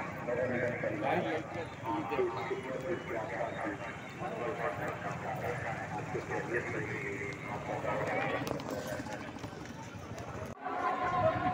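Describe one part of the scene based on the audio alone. A man talks close up amid noise.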